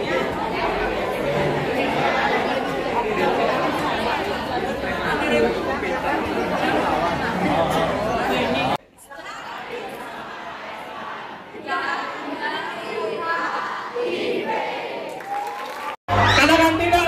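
A crowd of children chatters loudly in a hall.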